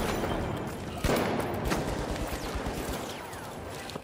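Coins scatter and jingle.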